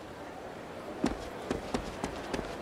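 Footsteps run quickly on a stone path.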